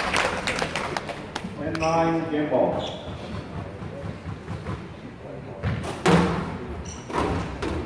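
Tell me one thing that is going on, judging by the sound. A squash ball smacks sharply against the walls, echoing in a hard room.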